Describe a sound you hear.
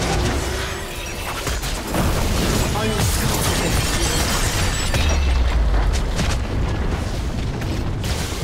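Game spell effects crackle, whoosh and boom in a busy battle.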